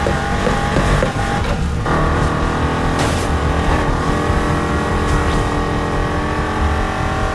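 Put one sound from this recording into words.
A powerful car engine roars steadily at high speed.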